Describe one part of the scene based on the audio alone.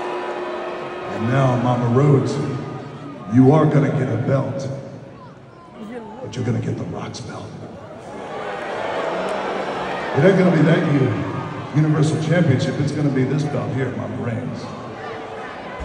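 A man speaks forcefully into a microphone, his voice booming through loudspeakers in a large echoing arena.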